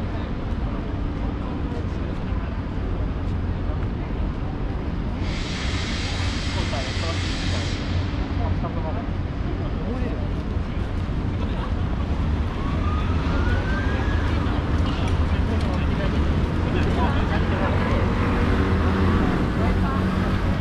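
City traffic hums steadily in the background outdoors.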